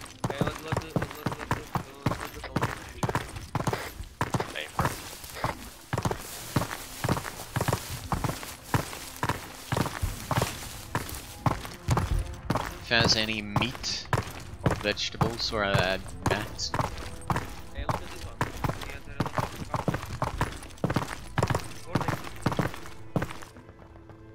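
Footsteps crunch steadily on dry dirt.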